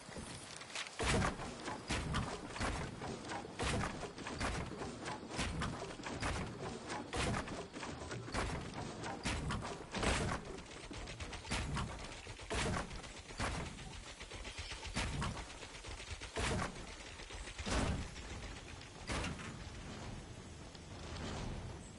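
Building pieces snap into place in quick, repeated clacks.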